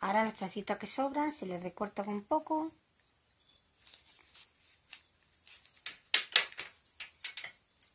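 Fabric and a plastic tool rustle and knock as hands handle them.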